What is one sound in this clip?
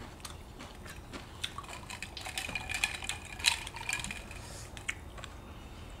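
A woman sips a drink noisily through a straw.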